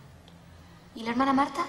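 A young woman speaks up.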